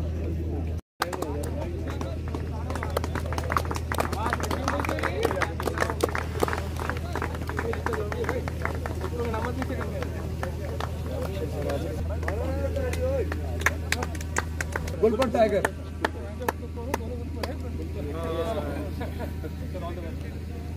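Several men talk casually nearby outdoors.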